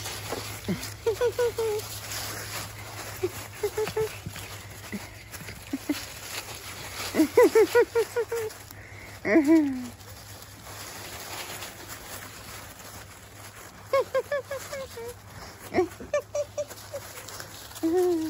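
Puppies yip and bark in short, high bursts.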